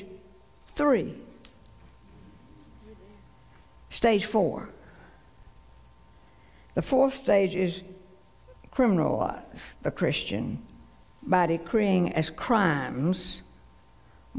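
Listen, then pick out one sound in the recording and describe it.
An older woman speaks slowly and earnestly through a microphone in a large hall, with pauses between phrases.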